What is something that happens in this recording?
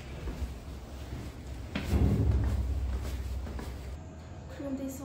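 Footsteps thud down stairs.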